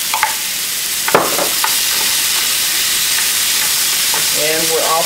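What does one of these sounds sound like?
Food sizzles loudly in a hot frying pan.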